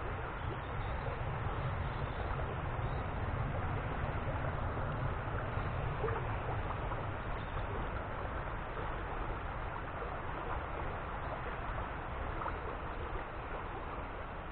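A small stream trickles gently.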